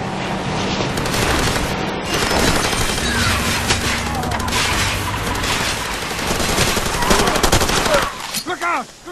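A truck engine roars over a bumpy dirt road.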